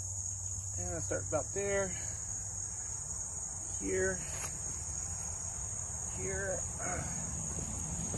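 A hand trowel scrapes and digs into loose soil.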